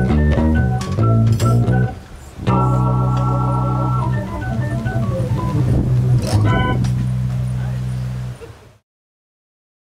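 An electric keyboard plays chords and melody.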